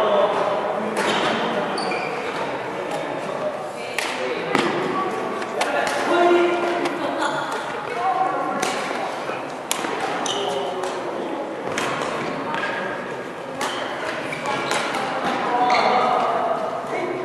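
A shuttlecock is struck sharply by rackets, back and forth.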